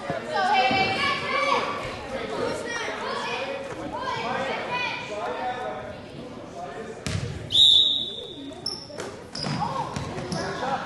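Children chatter and call out in a large echoing gym.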